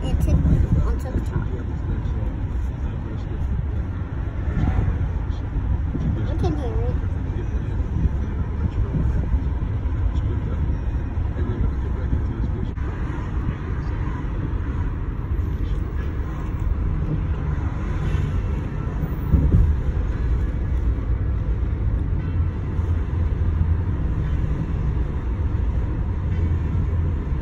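A car's engine and tyres rumble steadily from inside the car.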